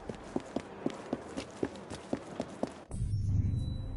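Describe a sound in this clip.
Quick footsteps run on a stone pavement.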